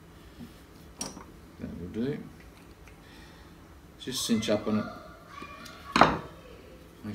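A screwdriver clicks and scrapes against a small metal part.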